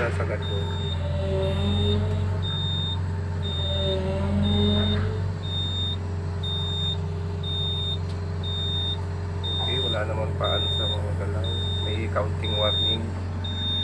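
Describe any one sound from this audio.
Excavator hydraulics whine as the arm swings.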